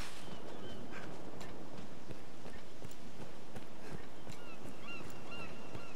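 Footsteps crunch over grass and a dirt path.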